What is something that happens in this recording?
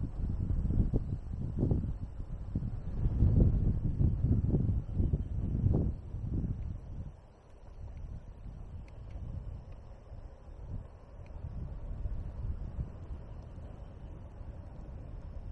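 Wind rumbles in strong low gusts outdoors, loudest at first and then easing.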